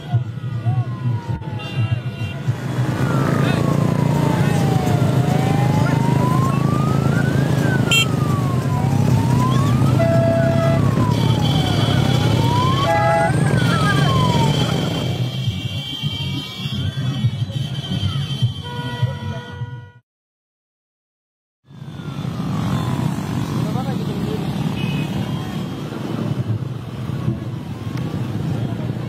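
Many motorcycle engines rumble and drone together.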